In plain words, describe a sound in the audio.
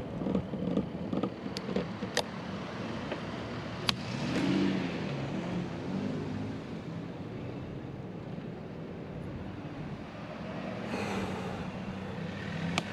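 Wind buffets past steadily outdoors.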